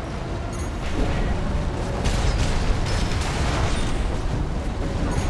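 Heavy gunfire and explosions boom continuously.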